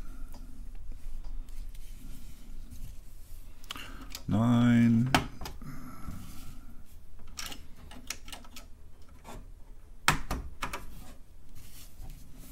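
Keys clack on a computer keyboard.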